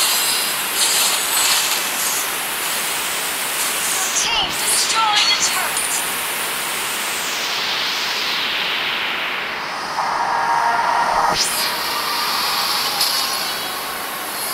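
Magic spell effects whoosh and crackle in a video game battle.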